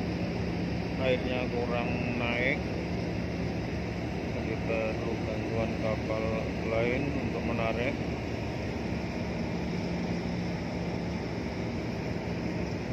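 A boat engine hums steadily.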